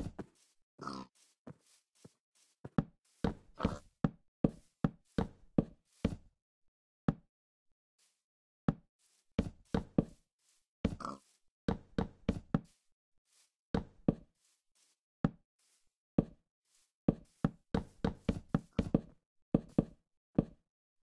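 Wooden blocks are placed one after another with quick, hollow knocks.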